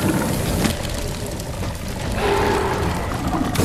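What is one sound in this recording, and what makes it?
Fire crackles.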